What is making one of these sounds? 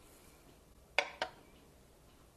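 A glass jar is set down on a scale with a light clink.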